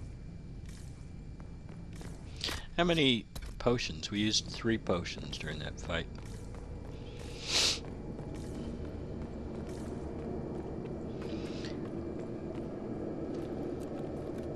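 Footsteps fall on a stone floor and stairs.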